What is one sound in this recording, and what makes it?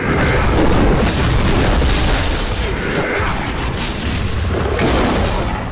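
Magic spells crackle and blast in a frantic game battle.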